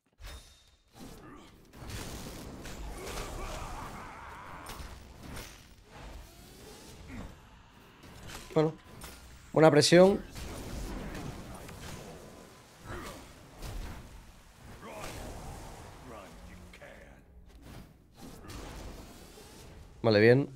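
Video game combat effects whoosh and thud.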